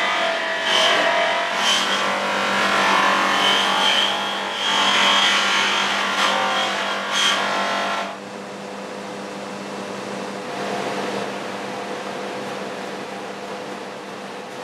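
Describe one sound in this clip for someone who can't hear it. A bench motor hums steadily.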